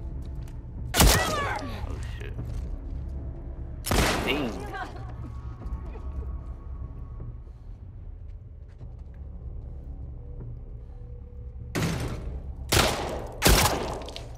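Loud gunshots crack and ring out with an echo.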